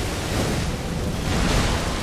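Flames roar in a burst.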